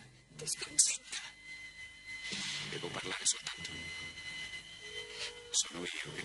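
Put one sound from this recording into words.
A woman sobs.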